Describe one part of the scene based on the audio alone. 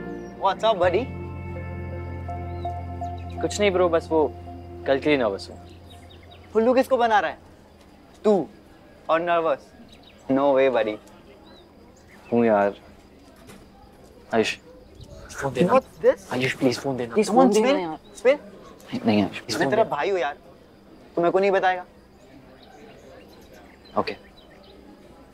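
Two teenage boys talk with each other nearby, with animation.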